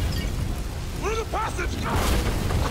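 A man shouts with strain, close by.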